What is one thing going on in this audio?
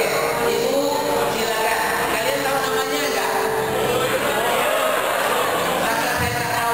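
A crowd murmurs and chatters in a room.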